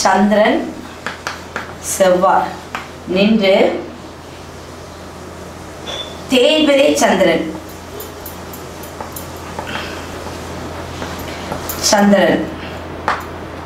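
A woman speaks calmly and clearly, close by, in short phrases.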